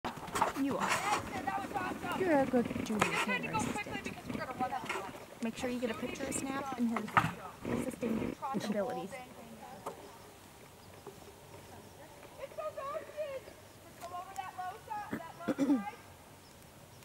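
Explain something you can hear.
Young riders talk and call out nearby outdoors.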